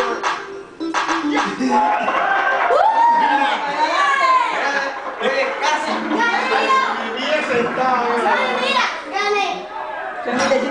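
A group of young people sing along loudly.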